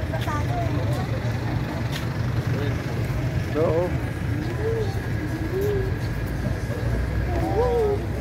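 Traffic rumbles along a city street.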